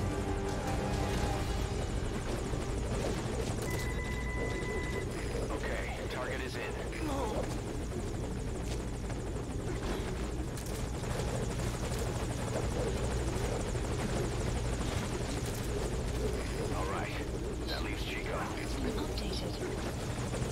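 A helicopter's rotor drones steadily nearby.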